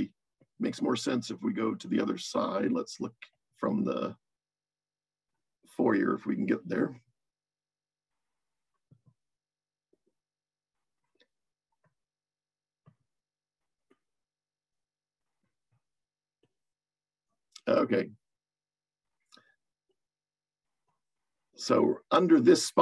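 A middle-aged man talks calmly through an online call, in short bursts with long pauses.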